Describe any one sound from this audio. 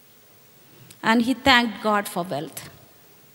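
An elderly woman speaks into a microphone, heard through a loudspeaker.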